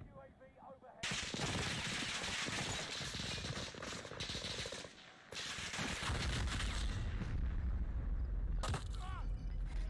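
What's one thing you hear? Gunfire and explosions boom loudly.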